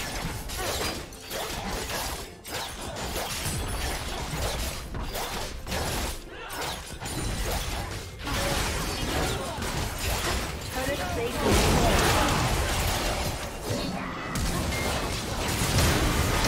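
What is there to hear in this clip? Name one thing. Fantasy game spells burst and crackle in a fast, busy fight.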